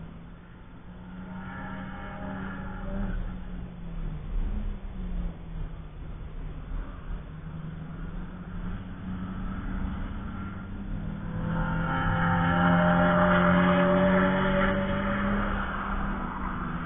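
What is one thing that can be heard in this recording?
Wind blows across the microphone outdoors.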